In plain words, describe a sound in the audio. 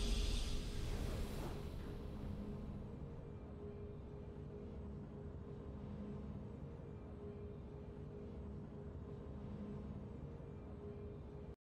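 A triumphant game fanfare bursts out and then settles into soft, steady music.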